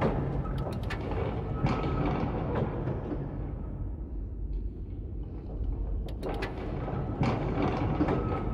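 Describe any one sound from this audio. A wooden plank creaks and thumps as it tips back and forth.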